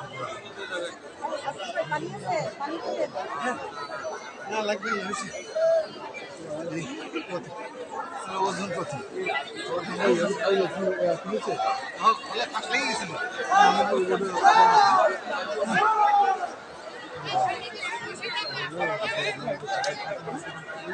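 A crowd of men and women talk and call out nearby.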